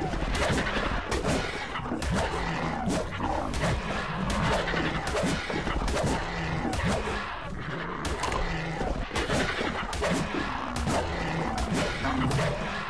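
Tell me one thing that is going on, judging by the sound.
Large wings flap heavily.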